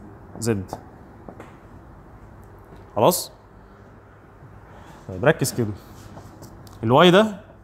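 A young man speaks in short bursts, calmly.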